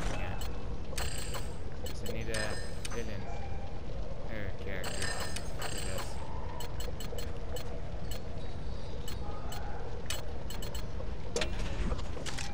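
Menu selections click and beep.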